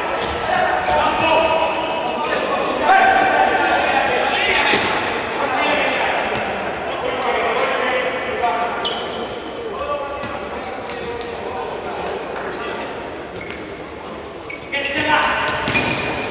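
A crowd chants and shouts in a large echoing indoor hall.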